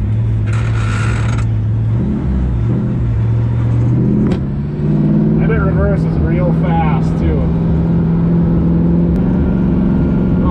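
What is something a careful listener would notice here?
An old truck engine rumbles steadily as the truck drives.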